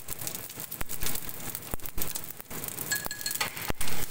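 Chopsticks clink against a small bowl while stirring.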